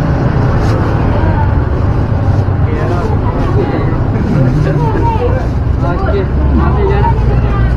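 A plastic bag rustles as it is opened.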